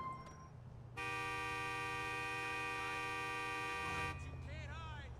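A car horn blares in one long, steady honk.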